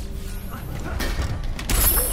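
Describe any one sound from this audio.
Game fighters trade blows with heavy thuds and whooshes.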